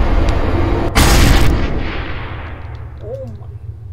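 A sudden loud blast booms and fades away.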